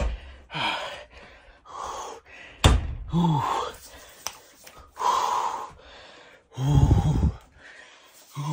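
A young man groans and gasps loudly.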